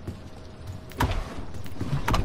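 A wooden drawer slides open with a thump.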